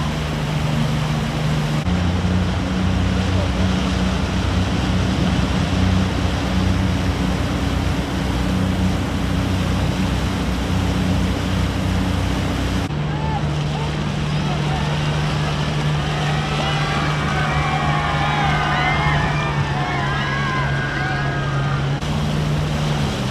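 A boat's outboard motor drones steadily.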